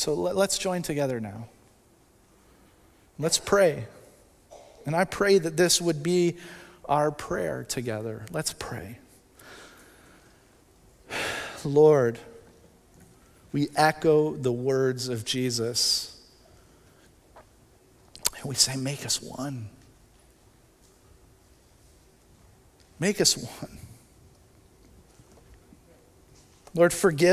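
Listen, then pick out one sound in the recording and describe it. A man speaks calmly through a microphone, in short phrases with long pauses.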